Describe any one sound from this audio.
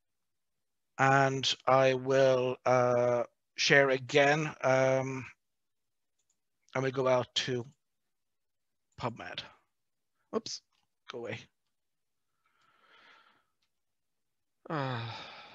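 A middle-aged man speaks calmly into a headset microphone over an online call.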